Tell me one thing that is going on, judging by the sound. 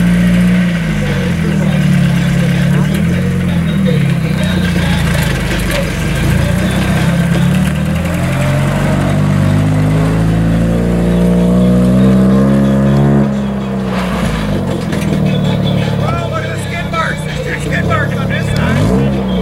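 A car engine idles and revs loudly, rising and falling.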